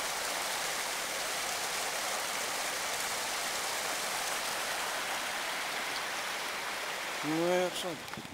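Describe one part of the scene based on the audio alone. A stream trickles and gurgles nearby.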